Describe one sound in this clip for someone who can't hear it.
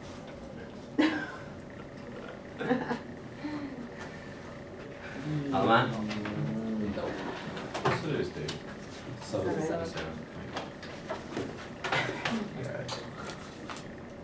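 A man speaks in short phrases with pauses, close by in a quiet room.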